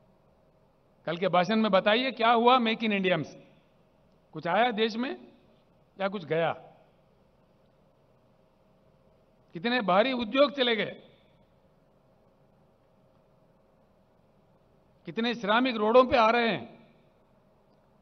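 An elderly man speaks forcefully into a microphone over a loudspeaker, in short bursts with pauses.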